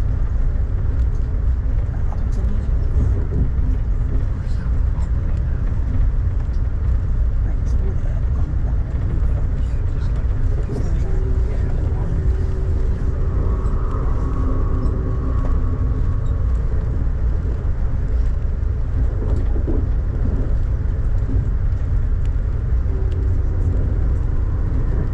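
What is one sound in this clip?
Rain patters against a window.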